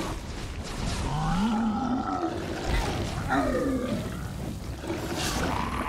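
A large monster roars and growls.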